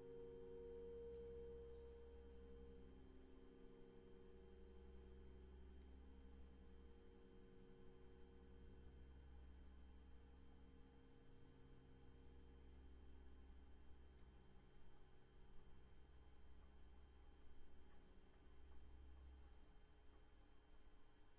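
A piano plays a slow, sustained melody.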